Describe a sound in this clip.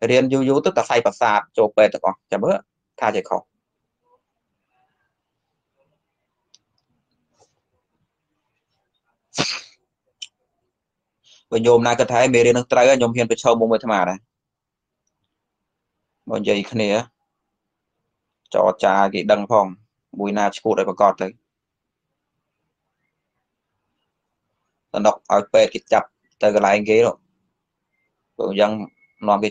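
A man speaks calmly and slowly into a microphone, with long pauses.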